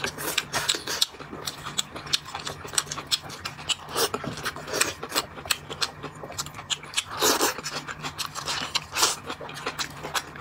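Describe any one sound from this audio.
Chopsticks clink against a bowl.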